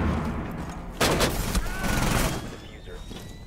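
An explosion blasts close by.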